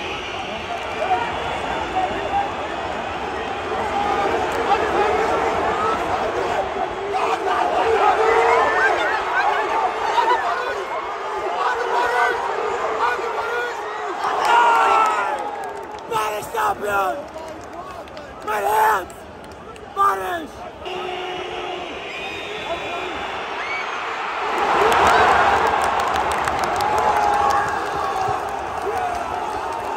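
A large stadium crowd chants and roars throughout.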